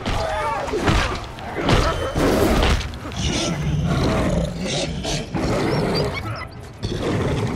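A wolf snarls and growls close by.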